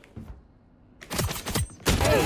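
A gun fires a single shot.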